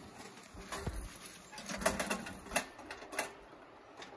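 Ashes and metal parts clatter into a metal fire ring.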